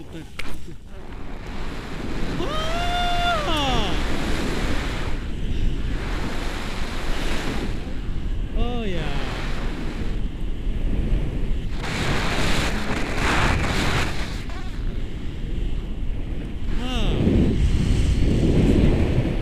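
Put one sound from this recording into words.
Wind rushes and buffets against the microphone during a paraglider flight.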